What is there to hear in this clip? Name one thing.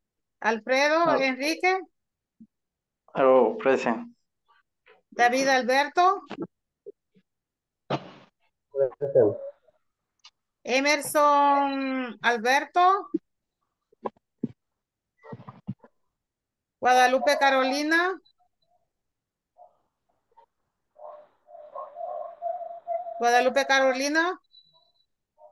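A woman speaks with animation over an online call, in short bursts with pauses.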